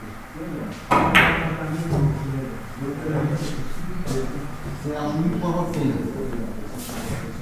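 Billiard balls knock against each other and the cushions.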